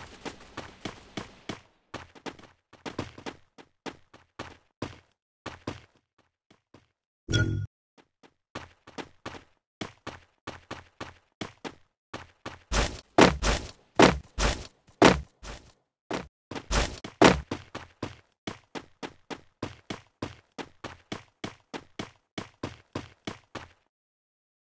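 Footsteps patter quickly on hard ground and metal.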